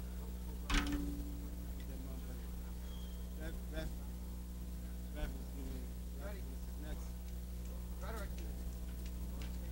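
A low electrical hum drones steadily through loudspeakers.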